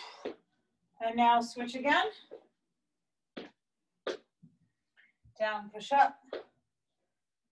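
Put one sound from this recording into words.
A young woman speaks loudly in short bursts.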